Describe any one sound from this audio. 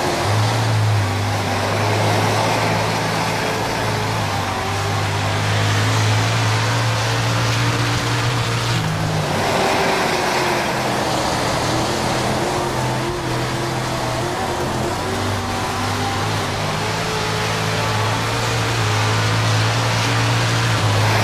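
A race car engine roars steadily, with pitch rising and dipping as it speeds up and slows down.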